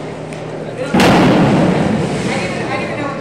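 A diver hits the water with a loud splash.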